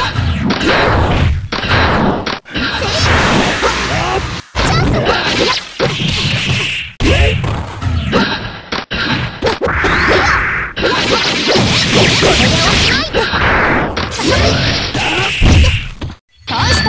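Video game punches and kicks land with sharp, rapid thuds.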